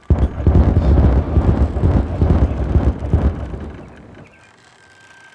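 An explosion booms and rumbles, then slowly dies away.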